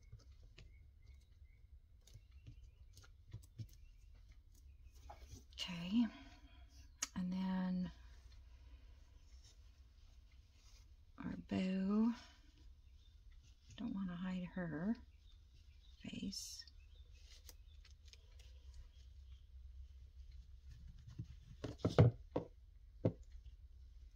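Paper and fabric rustle softly under hands.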